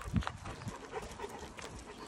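A dog pants.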